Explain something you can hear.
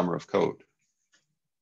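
A man speaks briefly over an online call.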